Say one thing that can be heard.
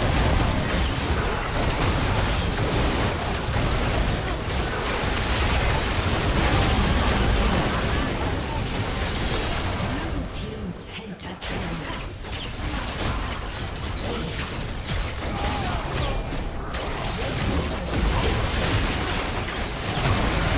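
Magic blasts, whooshes and crackling hits burst rapidly in a hectic fight.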